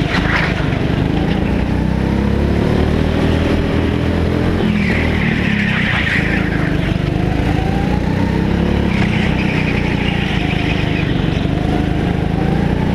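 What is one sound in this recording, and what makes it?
A go-kart engine buzzes loudly up close, rising and falling in pitch as it speeds up and slows.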